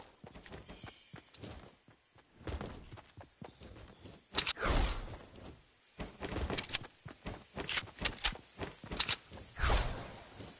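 Footsteps thud quickly across grass.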